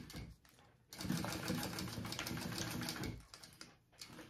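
A sewing machine runs in a quick whirring burst.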